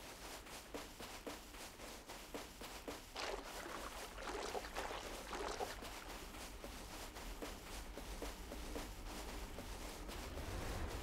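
Footsteps crunch steadily on sand and pebbles.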